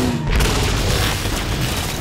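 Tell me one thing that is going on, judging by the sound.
A laser weapon fires with a sharp blast.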